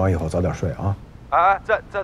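A man speaks calmly into a phone, close by.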